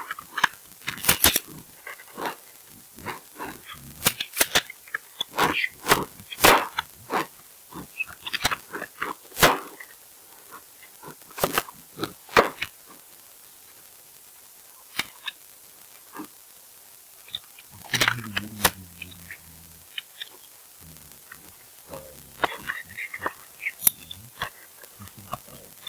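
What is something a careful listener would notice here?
Wooden pieces snap into place with sharp clacks.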